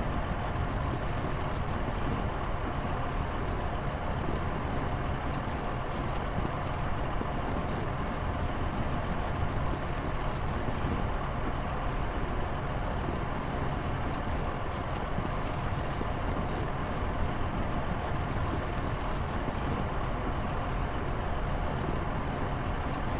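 Machines hum steadily.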